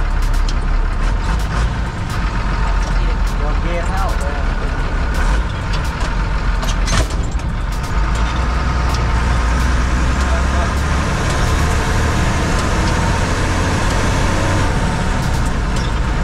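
Loose parts rattle and clatter inside the vehicle.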